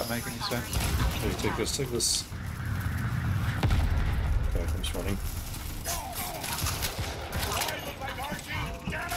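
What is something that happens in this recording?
Game gunfire and explosions rumble and crack.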